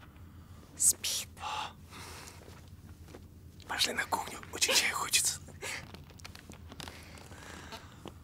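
A young woman whispers close by.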